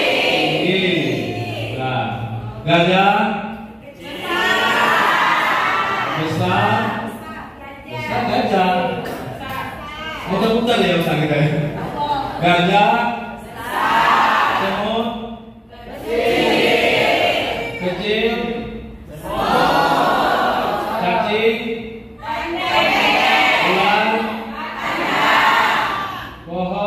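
A man leads a group song loudly.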